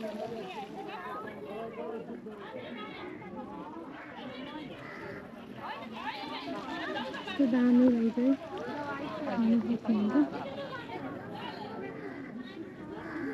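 Men and women chatter nearby, outdoors.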